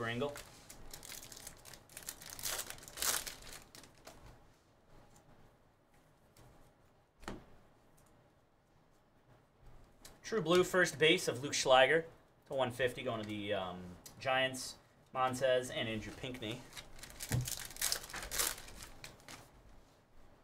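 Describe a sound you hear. Foil card wrappers crinkle as they are torn open.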